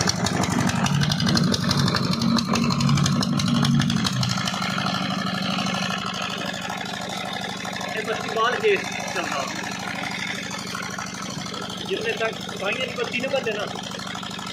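An engine pump runs with a steady low chugging.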